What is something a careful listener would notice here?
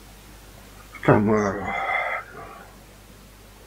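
A young man sings out loudly nearby in a short chanted phrase.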